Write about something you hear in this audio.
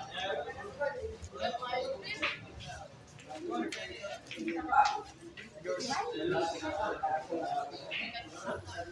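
Several men talk and chatter nearby in a lively crowd.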